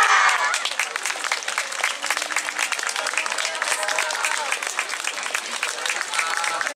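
Wooden hand clappers clack in quick rhythm.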